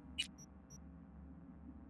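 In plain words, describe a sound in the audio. A menu button clicks with a short electronic beep.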